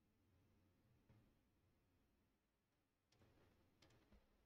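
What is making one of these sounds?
Soft menu clicks sound.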